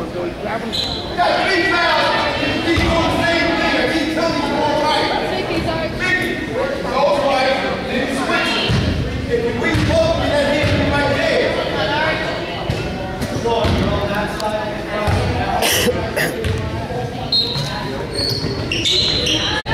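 Voices of players and spectators echo through a large indoor gym.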